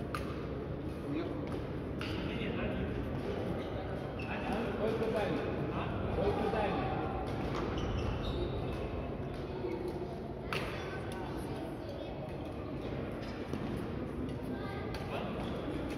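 Voices of men and women chatter in the hall.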